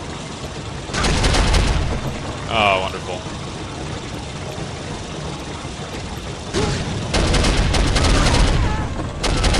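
A machine gun fires rapid bursts, echoing off hard walls.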